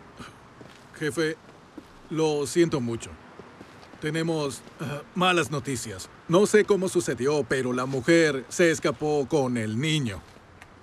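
A middle-aged man talks on a phone with urgency.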